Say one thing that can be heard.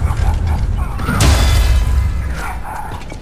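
A magical blast bursts with a loud crackling roar.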